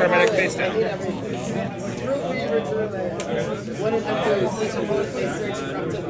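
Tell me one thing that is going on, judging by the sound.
Playing cards rustle softly as they are handled.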